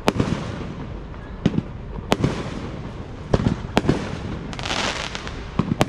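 Firework stars crackle after bursting.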